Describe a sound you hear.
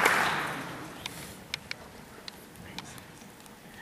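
Heels tap on a wooden stage.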